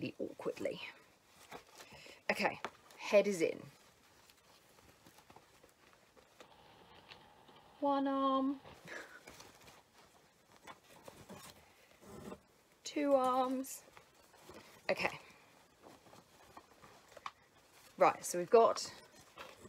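Fabric rustles as clothes are pulled onto a toy bear.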